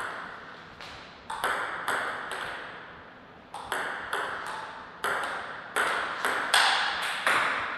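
A table tennis ball clicks back and forth off paddles and the table, echoing in a large hall.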